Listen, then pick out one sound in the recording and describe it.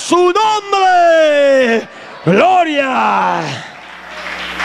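A man sings loudly through a microphone in a large echoing room.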